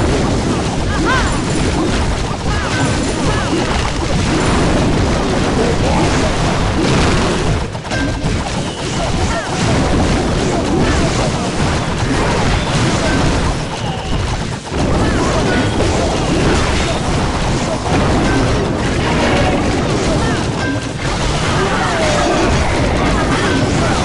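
Game battle sounds of troops attacking and buildings crumbling play loudly and busily.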